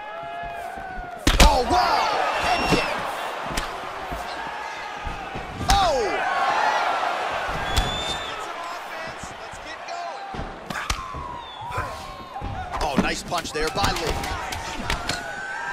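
Punches and kicks land with sharp thuds.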